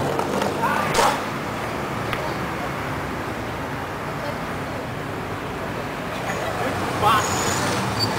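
A skateboard clatters onto the pavement.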